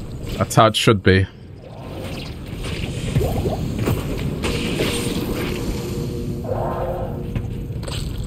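Blows thud and clash in a fight.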